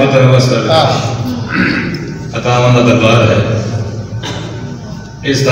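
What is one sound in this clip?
A man speaks loudly and passionately through a microphone and loudspeakers, echoing in a hard room.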